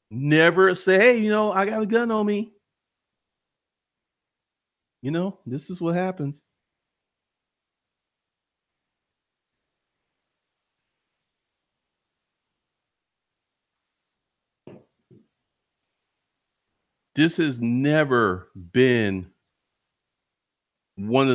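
A man talks calmly and closely into a microphone, in short bursts with long pauses.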